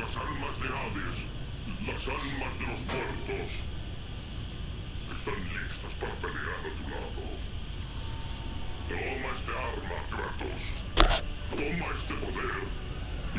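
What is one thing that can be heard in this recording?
Flames roar and rumble steadily.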